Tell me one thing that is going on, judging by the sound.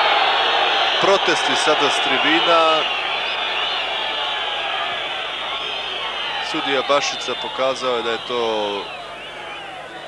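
A stadium crowd roars and cheers in the open air.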